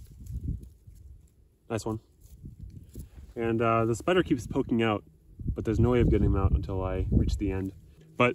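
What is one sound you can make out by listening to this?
Dry soil crumbles between fingers.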